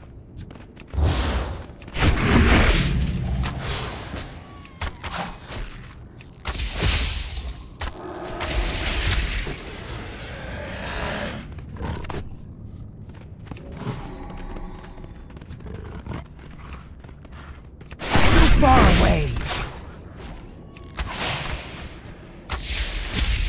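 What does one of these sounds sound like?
Magic spells whoosh and crackle in loud bursts.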